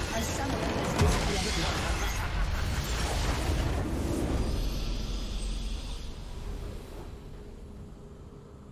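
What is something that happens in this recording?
A triumphant fanfare of game music swells and slowly fades.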